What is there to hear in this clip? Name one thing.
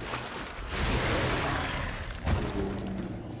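A heavy blow lands with a loud crash.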